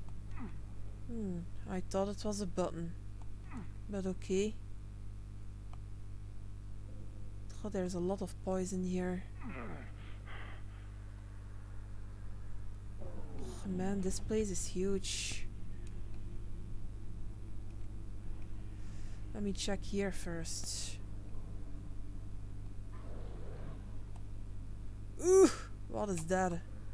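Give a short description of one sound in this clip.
A young woman talks casually into a microphone, close by.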